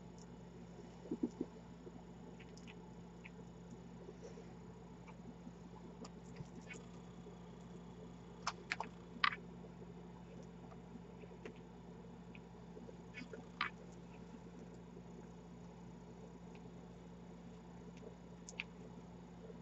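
Small beads click softly against each other as they are handled.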